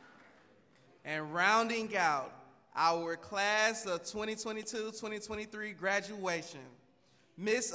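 A man speaks calmly into a microphone over loudspeakers in an echoing hall.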